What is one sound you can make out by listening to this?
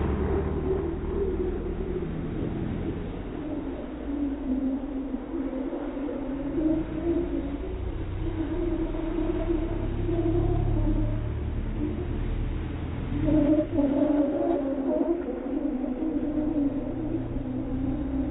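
Tyres squeal on the pavement.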